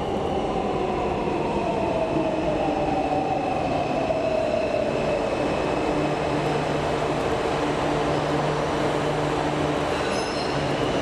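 A metro train's brakes whine as the train slows down.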